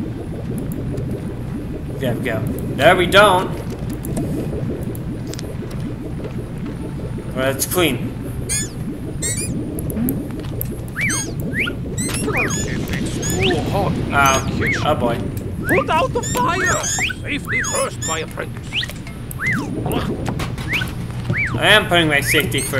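Bubbles pop with quick, light squeaks.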